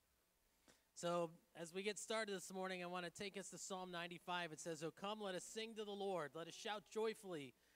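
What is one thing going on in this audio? A man speaks into a microphone, heard through loudspeakers in a large hall.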